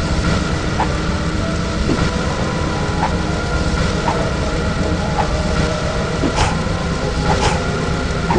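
Fire bursts with a whooshing roar.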